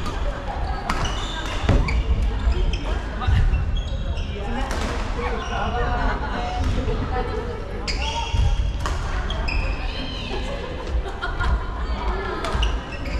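Shuttlecocks are struck with rackets in a large echoing hall.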